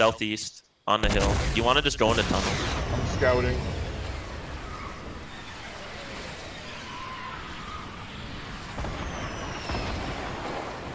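A rocket launches with a sudden blast and then roars steadily as it flies.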